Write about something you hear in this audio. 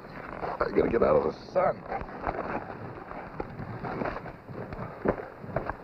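Footsteps scuff on dry ground.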